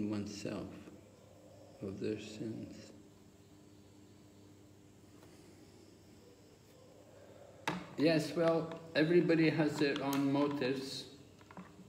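An elderly man speaks close by, in a low, strained voice.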